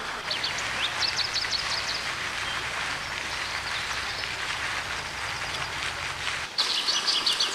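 A goat tears and chews grass close by.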